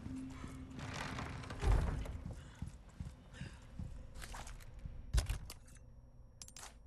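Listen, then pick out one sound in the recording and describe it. Footsteps echo across a large hard-floored hall.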